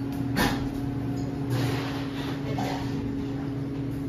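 An espresso machine hums steadily.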